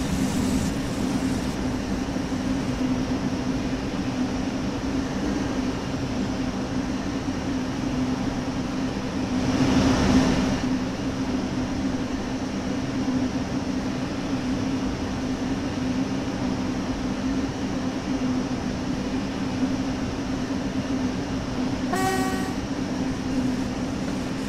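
Train wheels rumble over the track.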